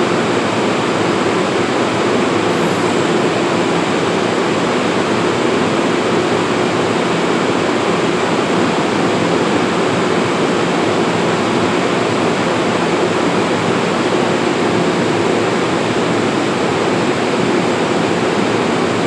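A stopped train hums and rumbles steadily nearby.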